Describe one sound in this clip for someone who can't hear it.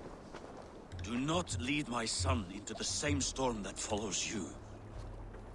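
A man speaks in a deep, grave voice.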